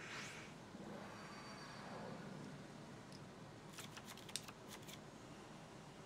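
Electronic game effects whoosh and shimmer as cards are dealt.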